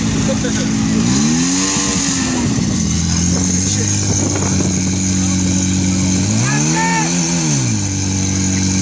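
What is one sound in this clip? A portable fire pump engine revs up and drops back.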